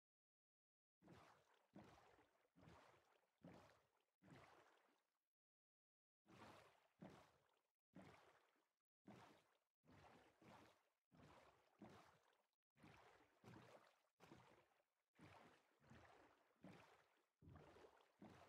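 Oars splash rhythmically through water as a small boat moves along.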